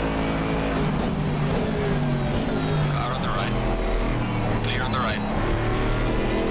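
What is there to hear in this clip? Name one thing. A racing car engine drops in pitch as it brakes and shifts down.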